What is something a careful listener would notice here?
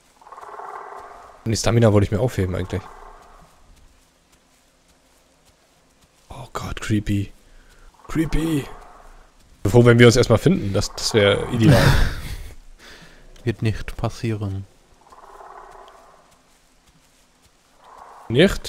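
Heavy footsteps thud softly on the ground.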